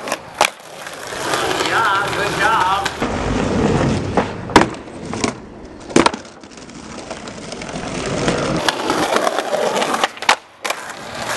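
A skateboard snaps and lands hard on concrete.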